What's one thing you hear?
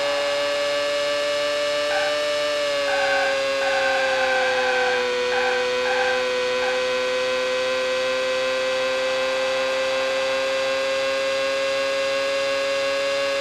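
A racing car engine whines at high revs, dipping slightly in pitch while braking and then holding steady.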